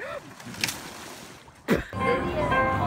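Water splashes loudly as a man falls in.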